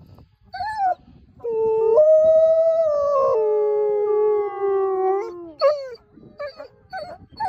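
A wolf yips in short, high bursts.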